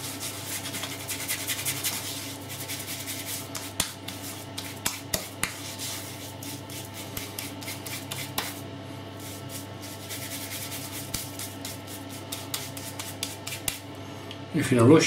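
A razor scrapes across stubble in short strokes.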